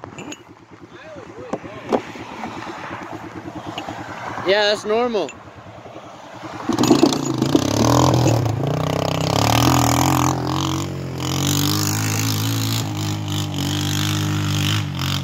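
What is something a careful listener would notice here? A quad bike engine rumbles close by and grows louder.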